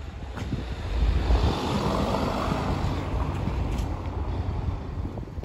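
A van drives slowly past nearby.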